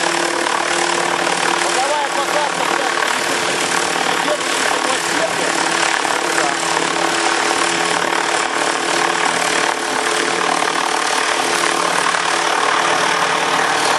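A model helicopter's rotor whirs steadily overhead.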